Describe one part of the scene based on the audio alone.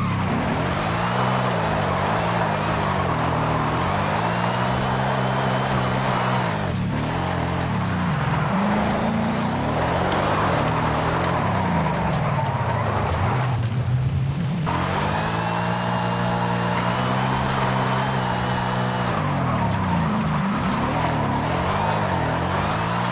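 A sports car engine roars and revs up and down throughout.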